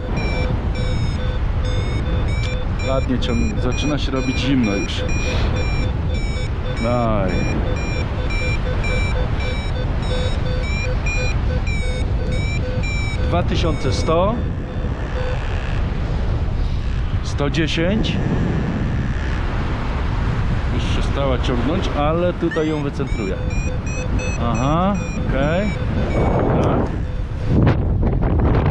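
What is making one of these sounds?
Wind rushes and buffets loudly past a paraglider in flight.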